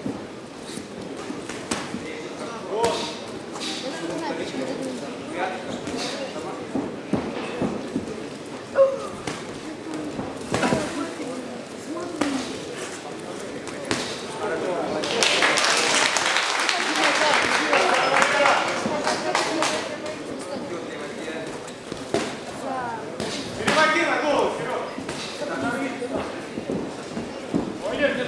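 Punches thud against gloves and bodies.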